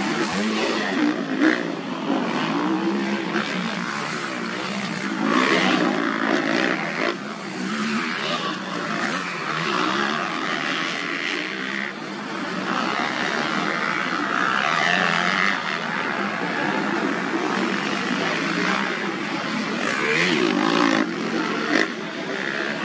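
A motocross motorcycle engine revs and roars.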